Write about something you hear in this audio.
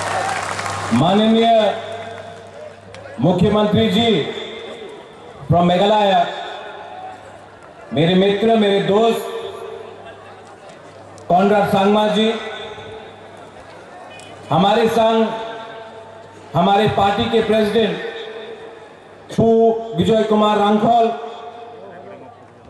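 A man speaks forcefully in short phrases through a loudspeaker, his voice echoing outdoors.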